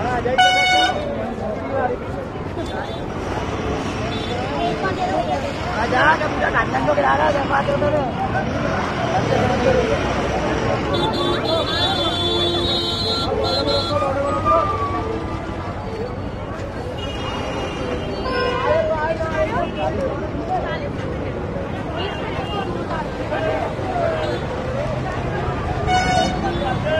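An auto-rickshaw horn honks close by.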